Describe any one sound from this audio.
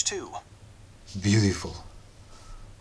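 A synthetic voice speaks through a small phone loudspeaker.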